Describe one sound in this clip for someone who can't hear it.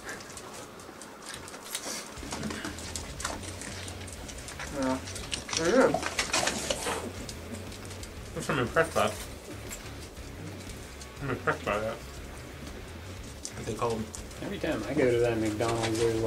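Paper wrappers rustle and crinkle.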